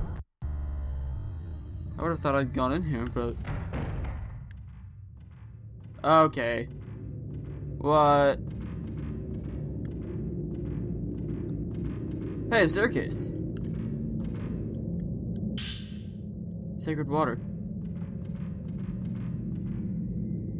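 Footsteps creak on a wooden floor.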